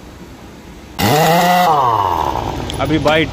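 A pneumatic impact wrench whines loudly as it spins a truck's wheel nut, its pitch rising and falling.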